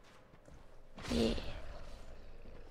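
A fiery blast bursts with a deep whoosh.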